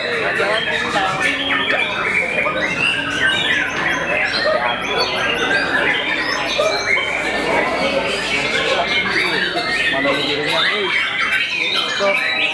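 A caged songbird sings loud, rapid, warbling phrases close by.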